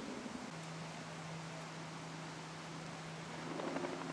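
Floodwater rushes and churns.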